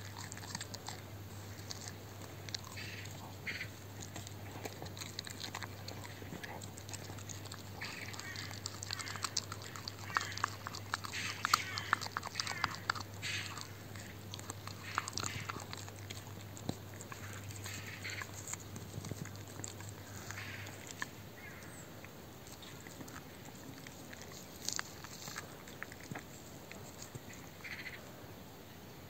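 A dog gnaws and crunches on a bone close by.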